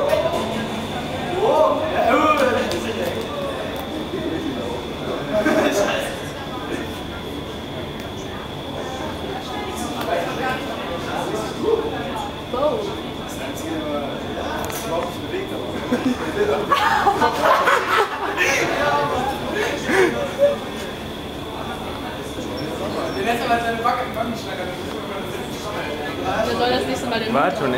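Men and women chatter nearby in the background.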